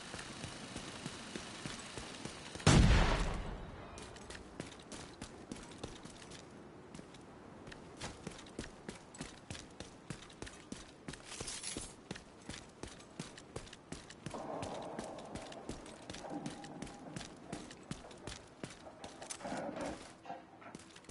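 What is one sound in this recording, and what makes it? Boots thud quickly on hard ground as a person runs.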